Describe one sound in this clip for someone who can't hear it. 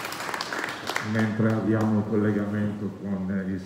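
An elderly woman speaks calmly into a microphone through a loudspeaker.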